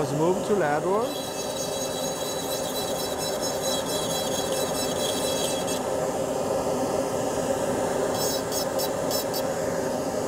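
A small dental drill whirs in short high bursts as it grinds.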